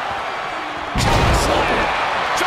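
A heavy body slams down onto a wrestling mat with a loud thud.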